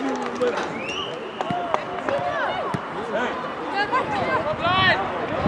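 Players shout and call out to each other across an open field.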